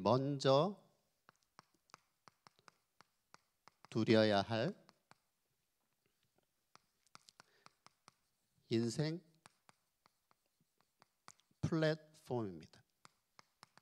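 A man speaks into a microphone in short, calm phrases with pauses.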